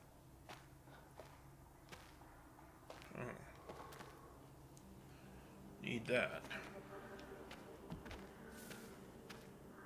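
Footsteps crunch through snow.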